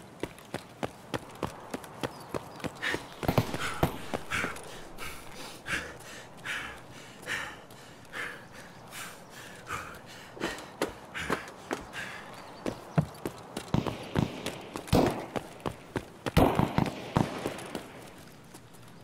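Footsteps crunch steadily over gravel and debris.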